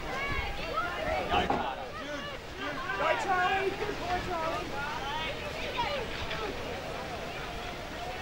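Spectators cheer and shout from the sideline.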